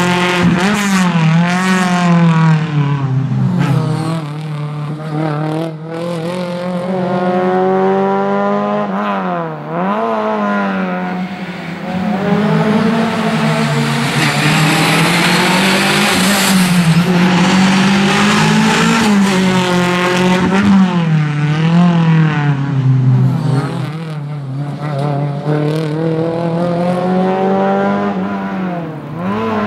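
A rally car engine revs hard, rising and dropping as it shifts through the gears.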